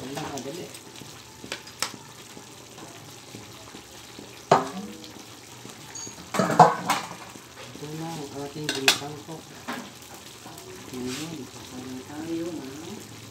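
Sauce bubbles and simmers gently in a pan.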